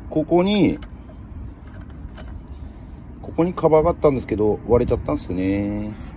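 A metal clip clinks as a hand unhooks it.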